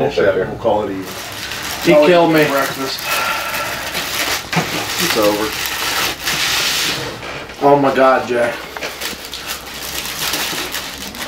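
Chip bags crinkle and rustle on a table.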